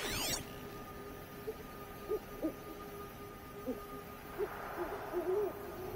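A bowstring creaks as it is drawn.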